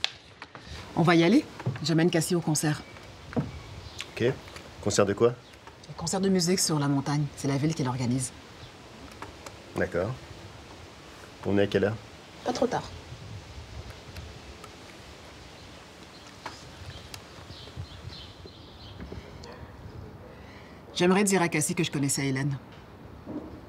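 A woman speaks calmly from close by.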